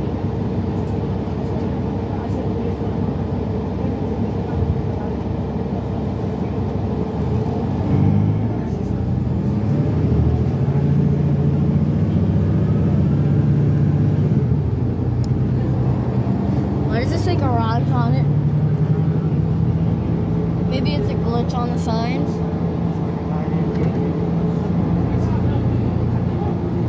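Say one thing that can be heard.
An engine hums steadily from inside a moving vehicle.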